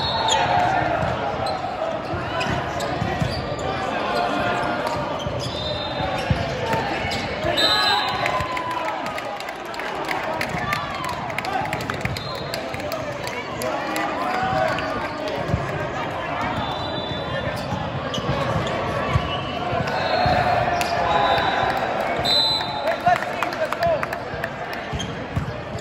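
Young men shout and call out during a volleyball rally in a large echoing hall.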